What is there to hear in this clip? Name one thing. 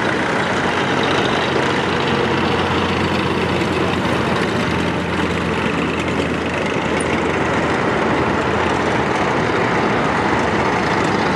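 A column of tracked military vehicles rumbles past with deep diesel engines.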